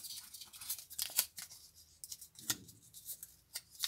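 Paper backing crackles softly as it is peeled off.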